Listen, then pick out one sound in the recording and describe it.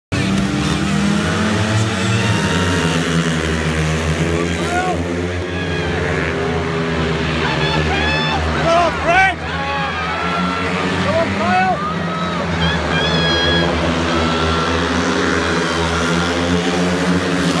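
Speedway motorcycle engines roar loudly around a track.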